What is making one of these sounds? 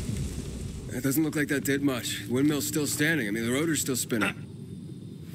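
A man speaks close by with urgency.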